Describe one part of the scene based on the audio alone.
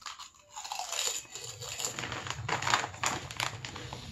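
A young man crunches a crisp close up.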